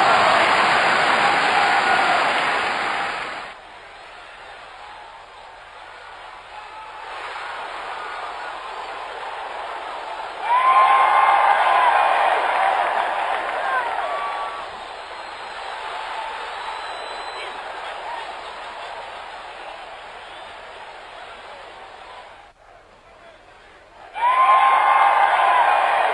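A crowd cheers loudly through a small loudspeaker.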